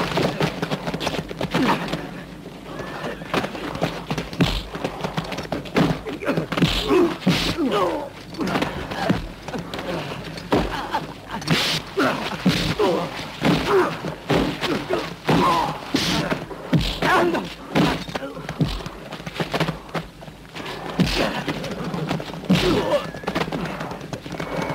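Men grunt and groan as they fight.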